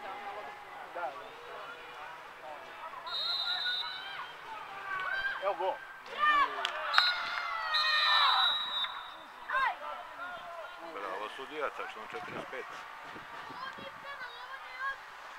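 Young women players shout and call out to each other outdoors.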